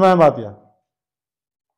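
A young man speaks briefly and clearly into a microphone, close by.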